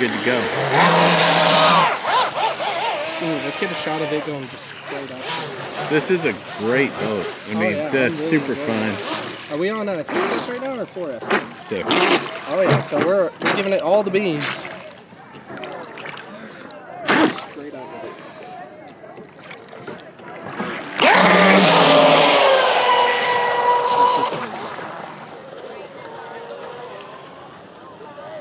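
A small motor whines high as a model boat races across the water, rising and falling in pitch.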